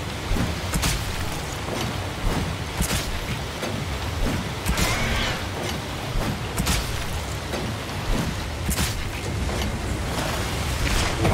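Water splashes and sloshes against a boat's hull.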